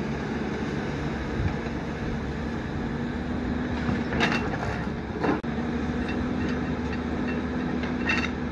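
An excavator bucket scrapes and thuds into dirt.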